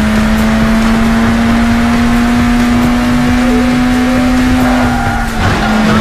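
A sports car engine hums steadily at high speed.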